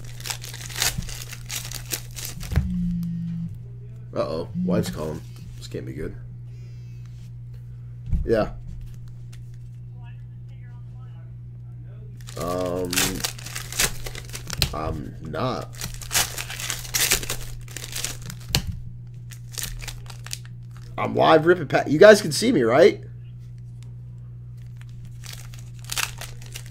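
Foil card packs crinkle and rustle as hands tear them open.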